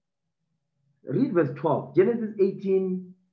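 A man speaks softly and closely.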